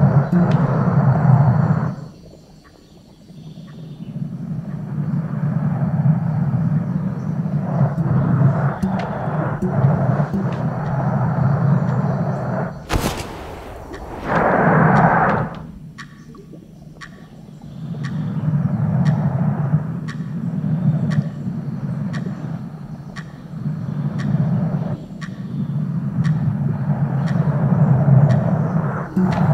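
A glass ball rolls and rumbles across a wooden floor.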